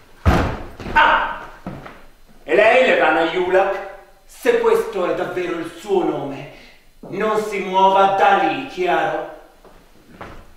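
A man shouts angrily in an echoing room.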